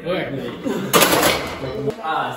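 A barbell clanks into its metal rack.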